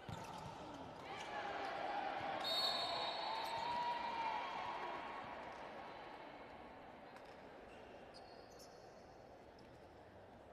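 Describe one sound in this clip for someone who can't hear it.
A crowd cheers loudly in a large echoing hall, then slowly quiets.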